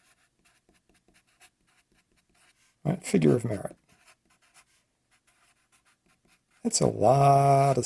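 A felt marker squeaks and scratches on paper.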